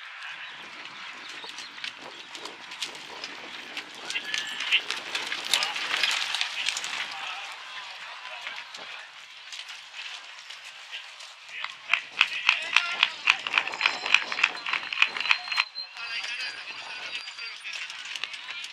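Horse hooves clop on dirt.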